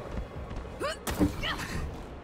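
A heavy thud of a landing on metal.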